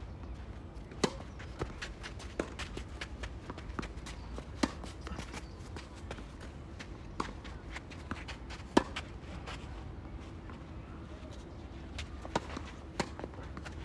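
A tennis ball is struck sharply by rackets back and forth.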